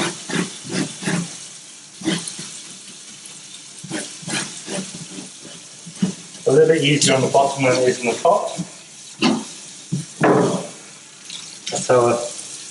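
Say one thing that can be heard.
Water runs steadily from a tap into a sink.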